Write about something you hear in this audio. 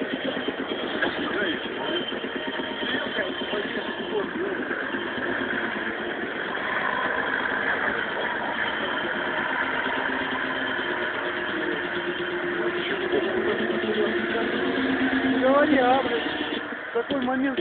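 An off-road truck engine roars and revs loudly close by.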